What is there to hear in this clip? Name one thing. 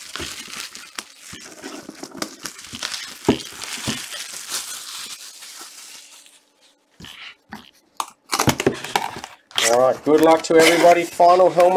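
Cardboard scrapes and rubs as a box is handled.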